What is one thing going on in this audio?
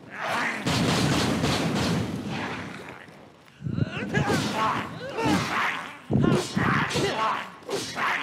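Flames roar and crackle in a burst of fire.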